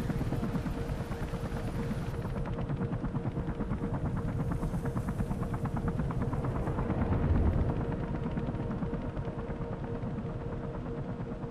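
A helicopter's rotor thuds overhead.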